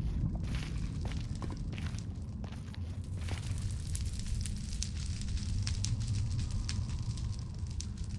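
Fire crackles close by.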